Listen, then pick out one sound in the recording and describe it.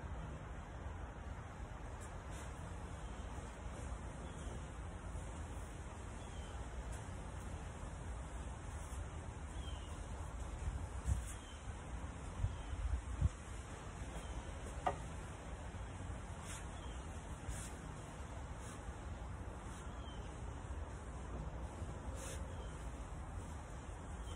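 A brush swishes softly as it strokes paint onto wood.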